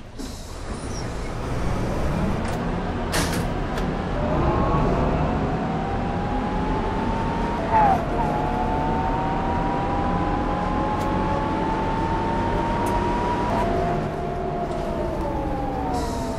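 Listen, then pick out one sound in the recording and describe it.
A bus engine drones and whines, rising in pitch as the bus speeds up.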